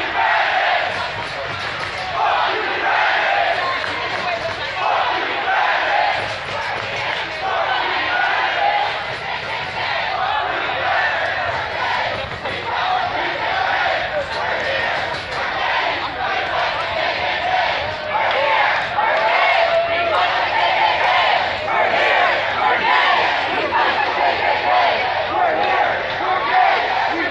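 A crowd of men and women shouts and chants loudly outdoors.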